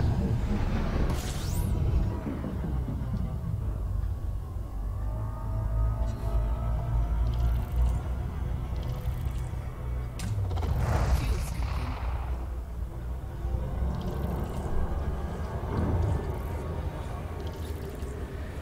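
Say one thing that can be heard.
A spaceship's engines rumble low and steady.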